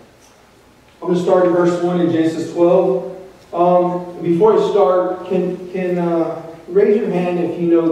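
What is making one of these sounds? A crowd of people sing together in an echoing hall.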